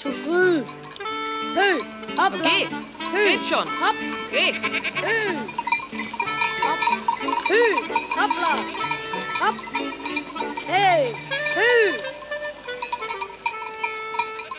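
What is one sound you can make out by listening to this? Goats bleat.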